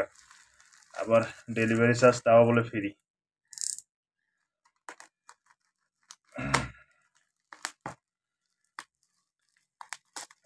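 A utility knife slices through plastic wrap.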